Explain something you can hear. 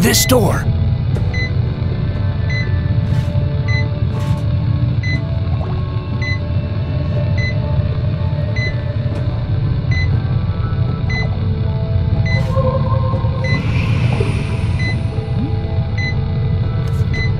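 A heart monitor beeps steadily at an even pace.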